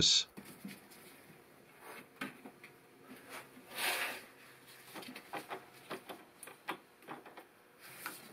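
A plastic hose fitting clicks and rattles under hands.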